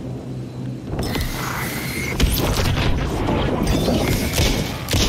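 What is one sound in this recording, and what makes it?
A gun fires loud shots close by.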